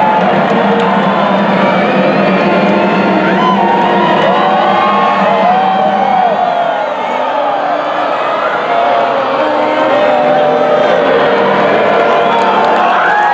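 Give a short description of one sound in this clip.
A marching band plays brass instruments.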